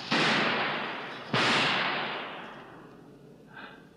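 A pistol fires twice, with loud echoing bangs.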